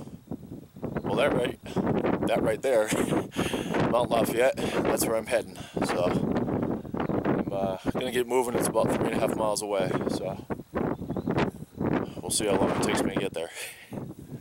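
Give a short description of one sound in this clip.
An adult man talks with animation close to the microphone.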